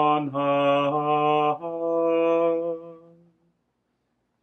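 An elderly man chants in a slow, steady singing voice, close by.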